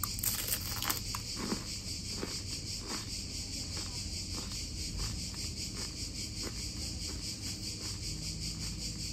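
A young woman chews food with soft, wet mouth sounds close by.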